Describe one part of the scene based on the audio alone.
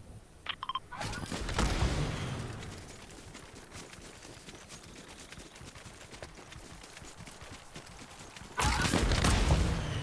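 Quick footsteps run through dry grass.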